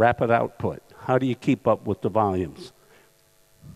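An older man speaks clearly through a headset microphone.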